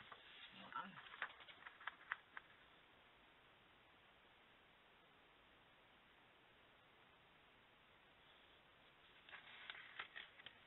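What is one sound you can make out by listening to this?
Paper rustles and taps as hands place and handle cards.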